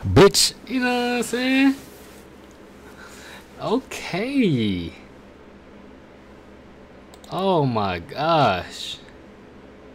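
A young man speaks animatedly, close to a microphone.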